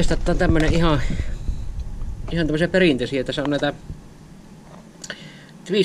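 A plastic box rattles softly as a hand turns it.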